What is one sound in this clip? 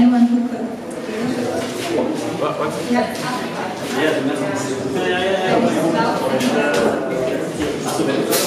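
Electric guitars play in a band.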